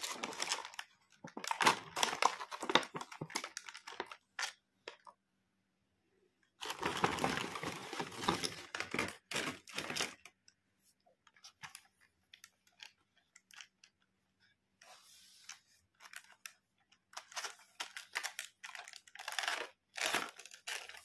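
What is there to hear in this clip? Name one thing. Plastic toy pieces rattle and clack in a plastic case.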